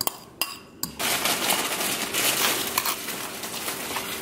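A fork scrapes across toast.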